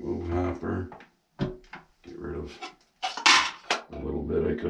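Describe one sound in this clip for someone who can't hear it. Grain rattles as it pours into a plastic cup.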